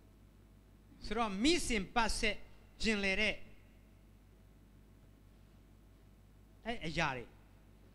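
A man speaks calmly into a microphone, with long pauses.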